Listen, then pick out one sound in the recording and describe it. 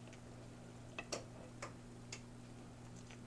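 A fork taps and scrapes in a pan.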